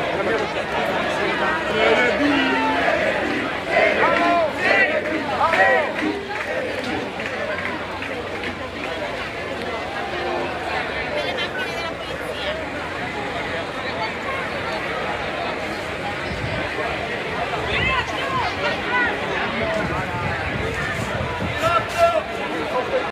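A large crowd outdoors chatters and cheers loudly all around.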